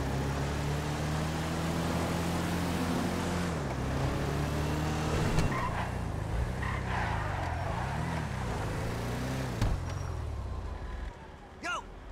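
A car engine revs and roars as the vehicle speeds along.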